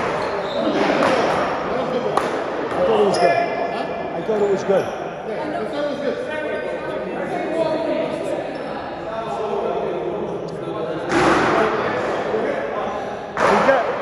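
A man talks from across the room.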